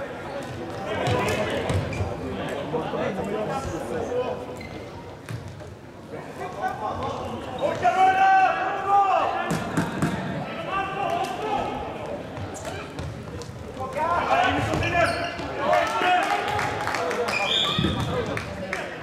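Plastic sticks click sharply against a ball.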